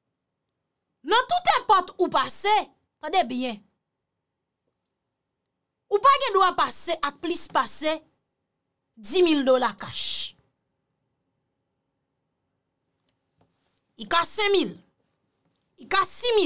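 A young woman speaks in short bursts close to a microphone, with pauses between.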